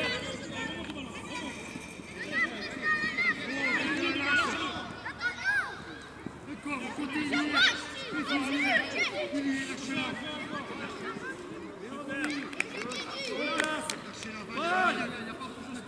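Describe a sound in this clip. A football is kicked on grass.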